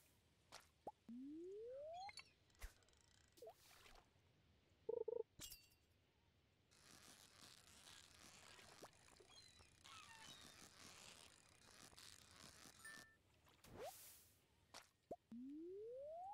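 A fishing line reels in with a rising whir.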